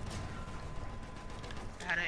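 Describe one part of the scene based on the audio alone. An explosion bursts with a deep rumble.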